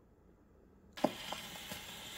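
A gramophone needle drops onto a spinning record with a sharp click.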